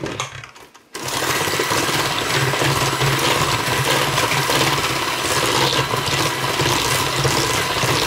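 An electric hand mixer whirs steadily as it beats a thick batter in a metal bowl.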